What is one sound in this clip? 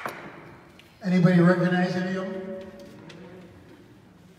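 A brass ensemble plays a sustained chord in an echoing hall.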